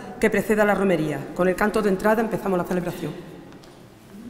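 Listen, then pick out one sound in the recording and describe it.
An older woman reads aloud through a microphone in an echoing hall.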